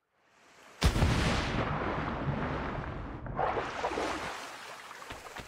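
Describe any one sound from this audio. Water churns and sloshes as someone swims.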